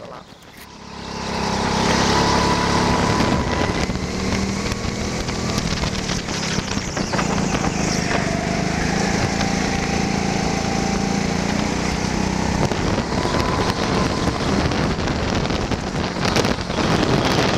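A go-kart engine buzzes loudly at high revs, echoing in a large hall.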